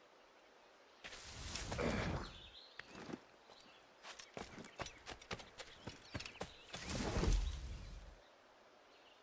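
Leaves rustle loudly in dense bushes.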